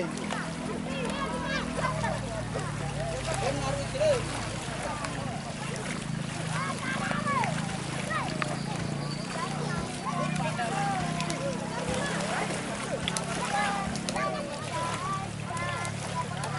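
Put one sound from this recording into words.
Gentle waves lap in open water.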